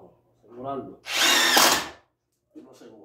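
A power tool whirs briefly in a short burst.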